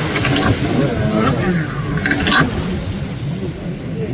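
Spray splashes from a jet ski turning hard.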